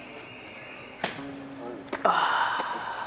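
Shoes land with a sharp thud on pavement.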